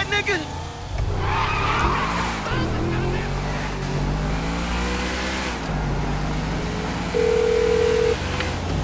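A car engine revs, rising and falling in pitch as the car speeds along.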